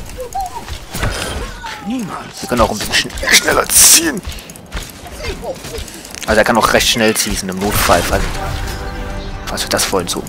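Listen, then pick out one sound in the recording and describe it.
Rapid gunfire and blasts crackle in a video game.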